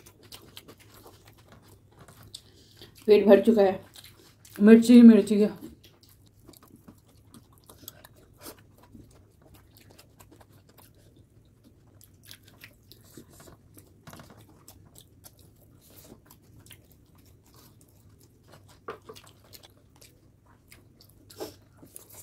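Fingers squish and mix soft food.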